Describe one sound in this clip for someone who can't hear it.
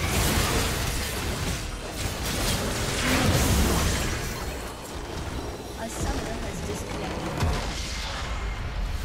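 Magic spells blast and crackle in a hectic battle.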